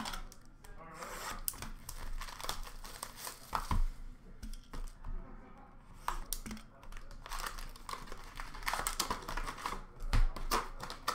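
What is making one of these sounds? Foil card packs crinkle and rustle as hands sort them in a plastic bin.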